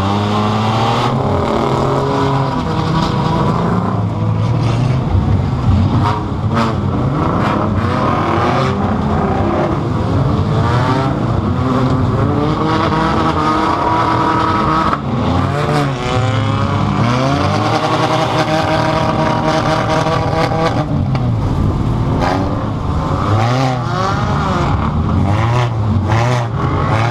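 Metal rattles and clanks inside a battered car.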